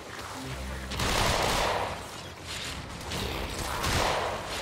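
A blade slashes through the air with rushing swooshes.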